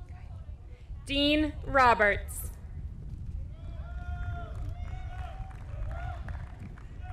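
A woman announces names over a loudspeaker, heard from a distance outdoors.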